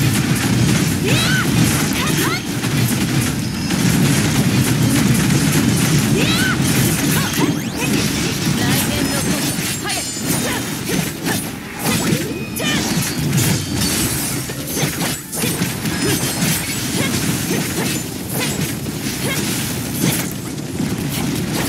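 Game combat sounds of slashing and explosions crash throughout.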